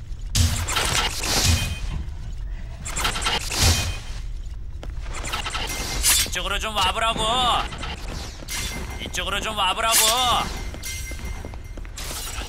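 Swords swish and clash in quick slashes.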